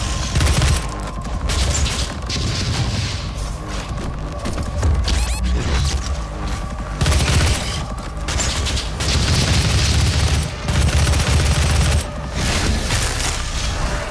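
Monsters snarl and roar.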